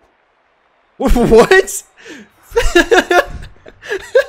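Two young men laugh loudly together.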